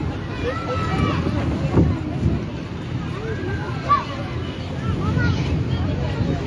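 Young children shout in high voices.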